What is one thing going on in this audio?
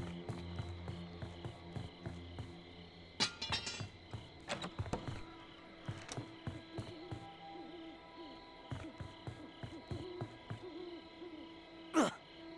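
Bare footsteps thud across a wooden floor.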